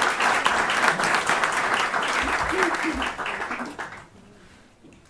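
An audience applauds in a large hall, then the clapping dies away.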